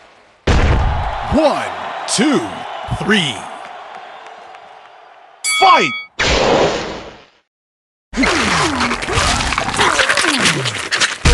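Punches land with heavy, booming thuds.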